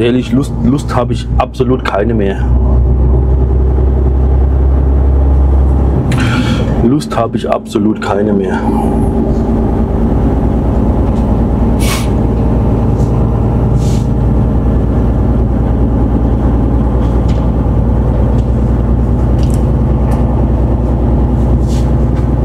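A truck engine hums steadily while driving on a road.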